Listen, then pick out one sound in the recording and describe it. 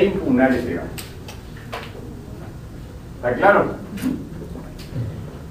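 A middle-aged man speaks into a microphone in short bursts.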